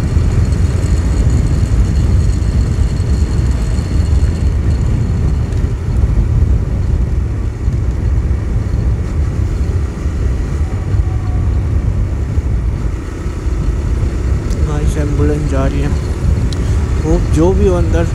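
Wind rushes loudly past a moving scooter.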